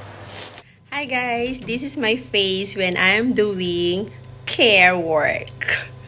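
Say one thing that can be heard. A young woman speaks with animation close up.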